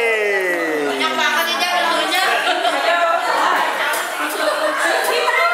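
A crowd of people cheers and chatters loudly nearby.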